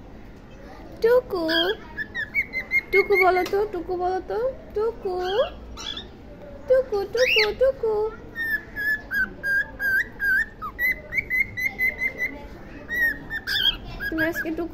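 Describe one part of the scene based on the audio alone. A cockatiel whistles and chirps close by.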